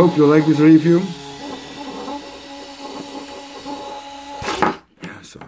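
A small electric motor hums with a steady whine, then stops.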